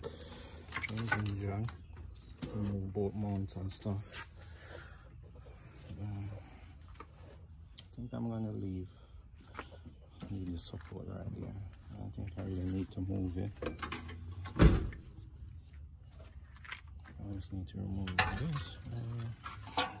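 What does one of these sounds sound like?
A gloved hand handles rubber hoses and wires, which rustle and click.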